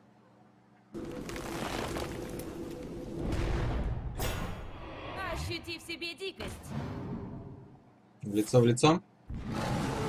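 Card game sound effects whoosh and crash.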